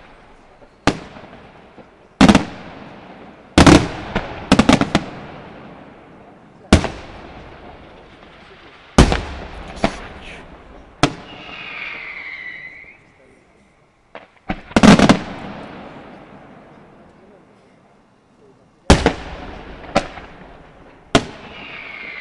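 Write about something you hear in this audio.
Fireworks burst with loud booms that echo away.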